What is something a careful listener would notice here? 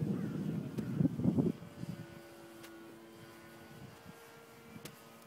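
A small propeller plane drones steadily overhead.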